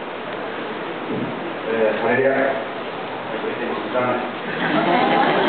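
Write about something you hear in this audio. A middle-aged man speaks through a microphone and loudspeakers in an echoing hall.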